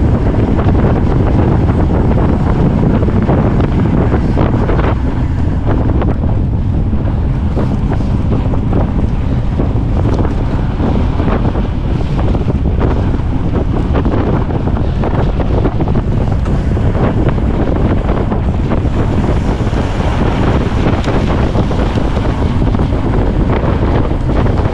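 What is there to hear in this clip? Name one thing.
Bicycle tyres crunch over packed snow.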